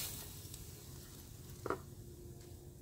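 A spatula scrapes and slides food onto a plate.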